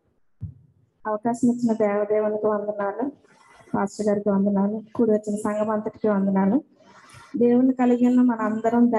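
A woman sings into a microphone, amplified through a loudspeaker.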